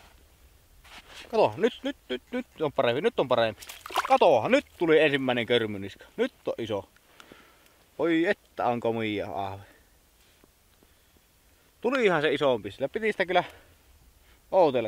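A man talks calmly nearby, outdoors in quiet air.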